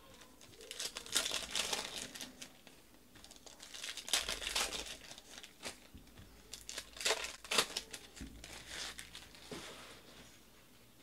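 Plastic wrappers crinkle and tear as packs are opened.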